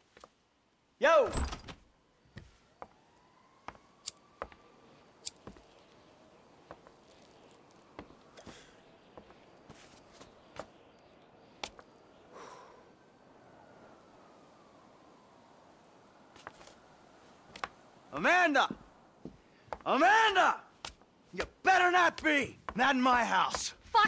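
Footsteps clack on a tiled floor.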